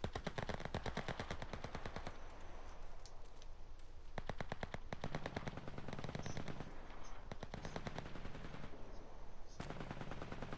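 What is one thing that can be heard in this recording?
Quick footsteps rustle through tall grass.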